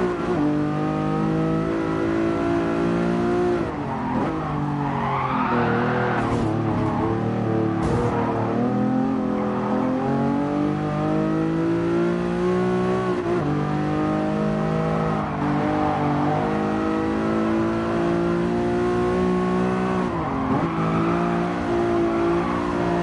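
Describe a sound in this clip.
A racing car engine roars loudly, revving up and dropping with each gear change.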